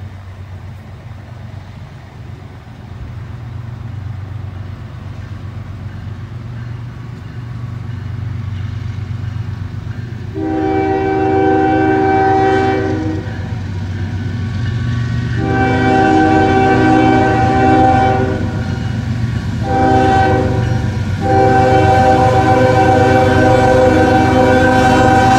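A diesel train engine rumbles, growing louder as it nears.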